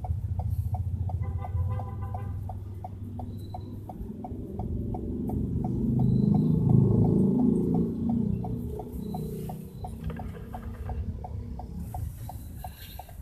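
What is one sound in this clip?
A vehicle's engine idles and rumbles nearby.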